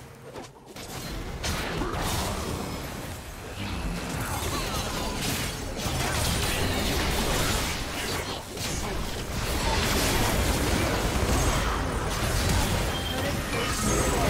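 Video game combat sound effects clash, whoosh and crackle.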